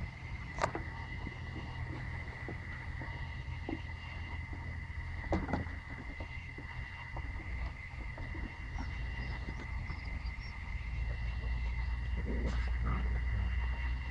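A puppy's paws patter and scrape on wooden boards.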